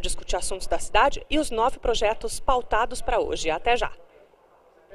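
A young woman speaks clearly and briskly into a close microphone.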